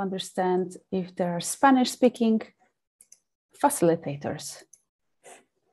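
A young woman speaks calmly and clearly into a close microphone, in short phrases.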